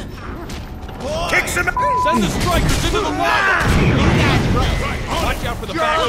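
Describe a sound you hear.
Weapons clash and screech in a loud fight.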